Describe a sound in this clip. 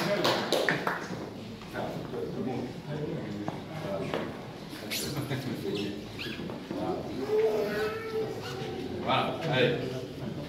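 Men and women chat nearby in low voices.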